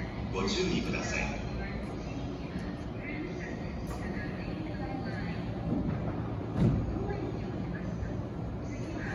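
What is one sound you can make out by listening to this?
A train idles with a steady low hum.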